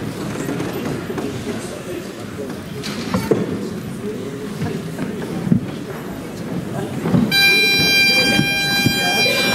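A drum thumps a few times.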